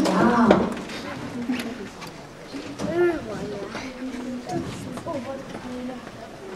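A woman speaks into a microphone on stage, in an echoing hall.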